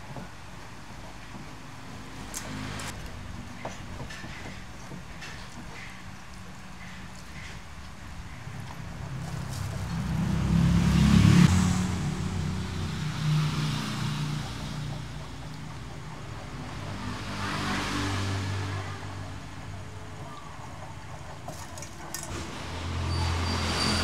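Wet fish squelch and slap as hands handle them in a metal bowl.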